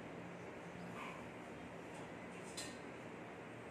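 Dishes clink against each other in a sink.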